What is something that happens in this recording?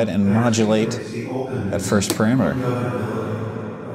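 A patch cable clicks into a socket.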